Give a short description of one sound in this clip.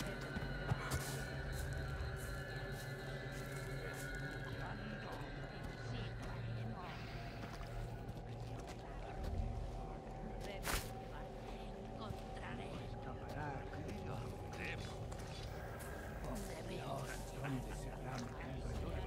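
Footsteps shuffle slowly through wet mud.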